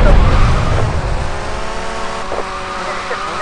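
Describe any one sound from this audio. A motorbike engine hums steadily nearby.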